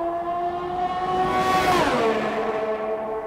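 A racing car roars past close by with a sharp rush.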